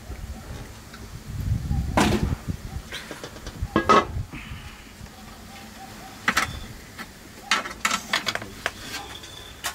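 Steam hisses softly from a pot of simmering food.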